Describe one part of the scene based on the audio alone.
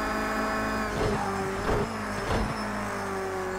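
Gears shift with sharp clunks as the engine slows.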